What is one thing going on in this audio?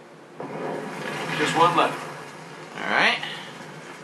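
A torch flame ignites a brazier with a whoosh.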